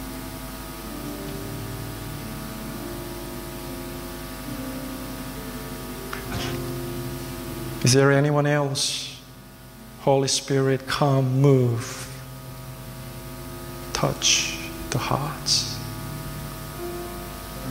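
A keyboard plays soft sustained chords in the background.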